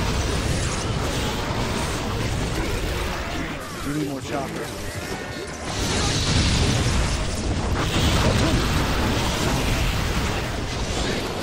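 Explosions and blasts roar in a fighting game.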